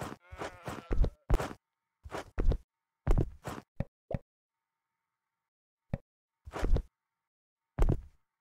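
A wooden plank knocks and thumps as it is handled.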